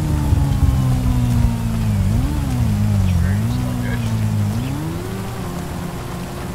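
A motorcycle engine hums nearby, its pitch rising and falling.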